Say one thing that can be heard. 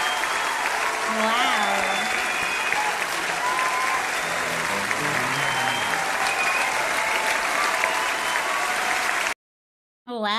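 A crowd cheers and applauds at a live concert.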